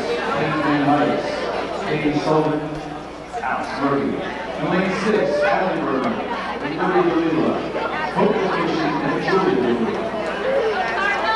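A crowd of young people chatters and calls out in a large echoing hall.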